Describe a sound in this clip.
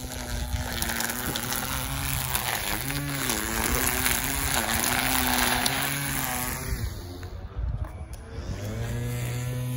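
A string trimmer whines loudly nearby, its pitch rising and falling as it cuts grass.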